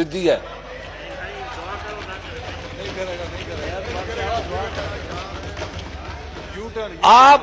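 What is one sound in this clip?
A crowd of men murmurs and chatters in the background.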